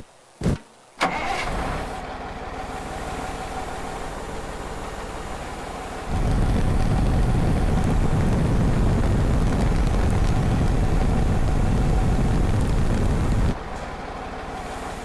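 A heavy diesel crane truck's engine rumbles.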